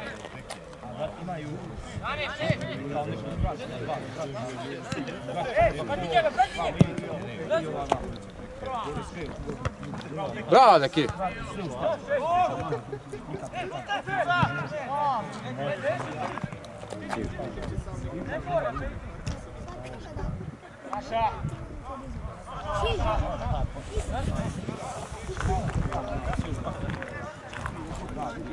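Young men shout to each other across an open pitch outdoors.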